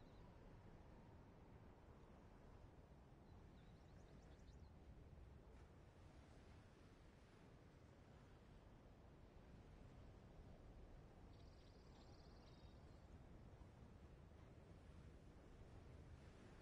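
Ocean waves wash softly against a rocky shore.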